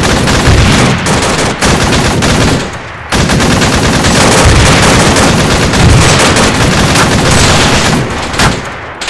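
A heavy machine gun fires in long, rapid bursts.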